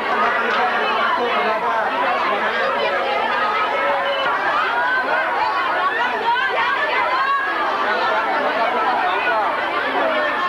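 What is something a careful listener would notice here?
A crowd of young people chatters and shouts excitedly all around.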